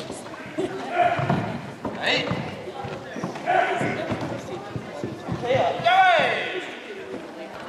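A martial artist shouts loudly as he strikes, echoing in a large hall.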